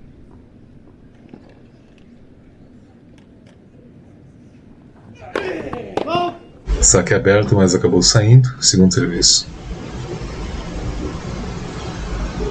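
A tennis ball bounces on a grass court.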